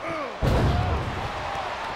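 A metal trash can crashes down with a heavy clang.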